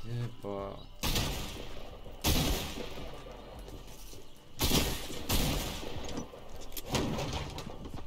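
A pickaxe swings with loud whooshes.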